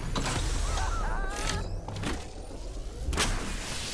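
A shield cell charges up with a rising electronic whir.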